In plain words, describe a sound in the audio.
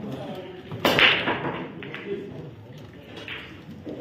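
Billiard balls knock against each other and roll across the table.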